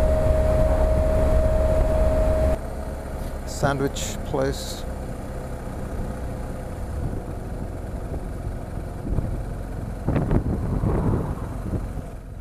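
Wind rushes loudly past, then eases as the ride slows.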